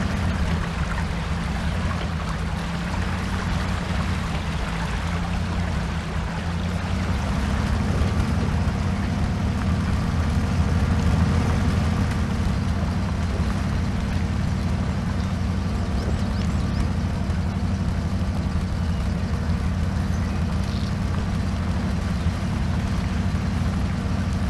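A truck engine rumbles steadily as it drives through mud.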